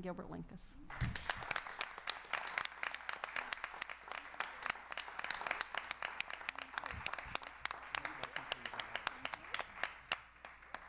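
An audience applauds steadily in an echoing hall.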